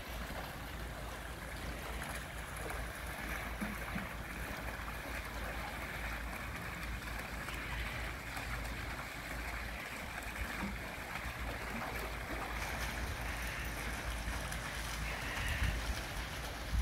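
Water splashes steadily from a small fountain and a spillway into a pool.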